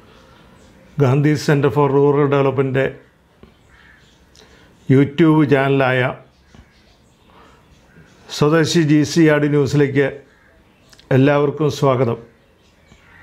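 A middle-aged man speaks calmly and clearly into a close microphone, with short pauses.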